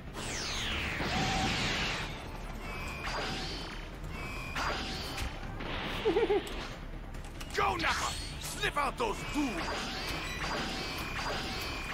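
Game sound effects chime and whoosh repeatedly.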